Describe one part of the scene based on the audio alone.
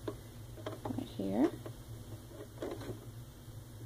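A plastic card slides into a slot with a soft scrape.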